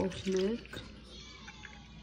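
Milk pours from a jug into a bowl.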